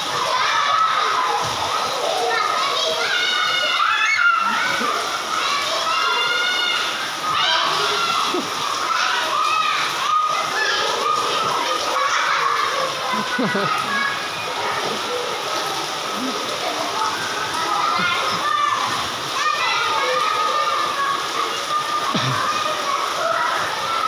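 Young girls shout and chatter playfully close by.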